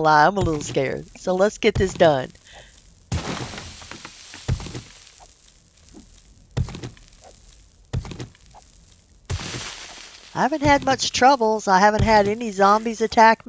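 A pickaxe strikes dirt and rock with dull, repeated thuds.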